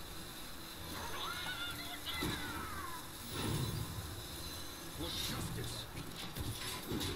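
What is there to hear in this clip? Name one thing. Magical chimes and whooshes ring out from a game.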